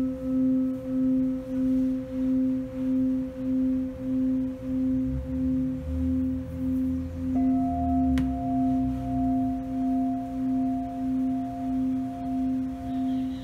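A crystal singing bowl rings with a steady, gently pulsing hum.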